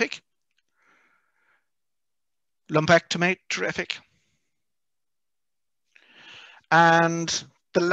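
A middle-aged man speaks in bursts through a headset microphone over an online call.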